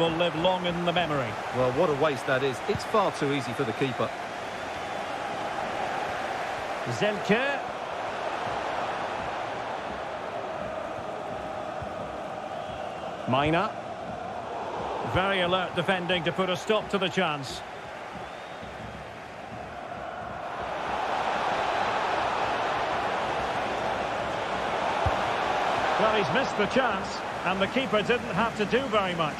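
A large stadium crowd roars and chants steadily, swelling louder toward the end.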